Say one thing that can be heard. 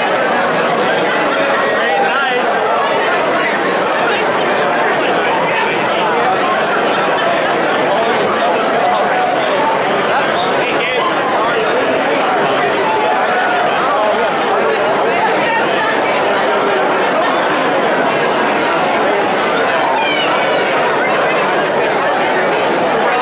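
A crowd of men and women chatter and call out in a large echoing room.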